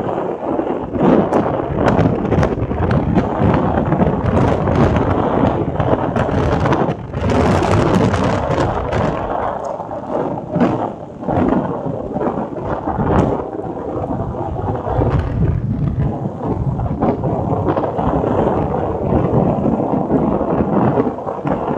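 Wind buffets loudly and steadily.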